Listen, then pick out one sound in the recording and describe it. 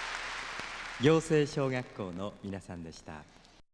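A man speaks cheerfully into a microphone.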